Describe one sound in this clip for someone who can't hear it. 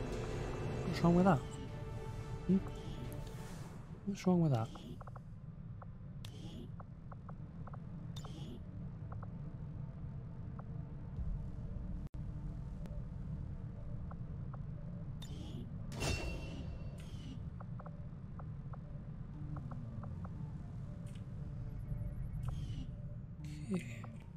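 Short electronic clicks and swooshes sound as game menus are opened and chosen.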